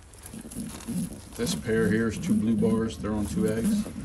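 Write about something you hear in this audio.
Straw rustles under a hand beside a nesting pigeon.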